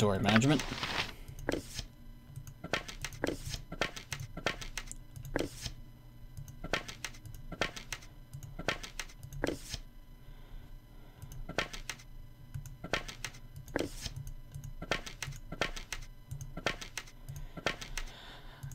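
Soft clicks of a game menu sound as items are moved.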